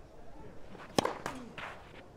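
A racket strikes a tennis ball hard.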